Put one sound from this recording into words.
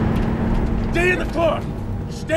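A man shouts.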